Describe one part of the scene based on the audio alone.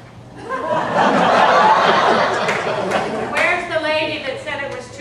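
An elderly woman speaks loudly with animation.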